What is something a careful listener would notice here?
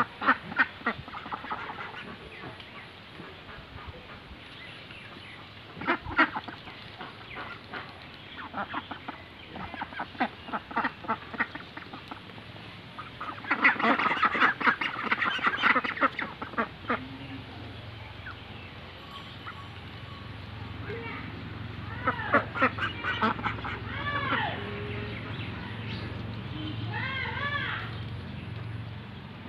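A flock of ducks quacks loudly and busily close by.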